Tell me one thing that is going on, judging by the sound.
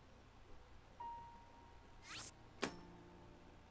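Short electronic menu tones chime.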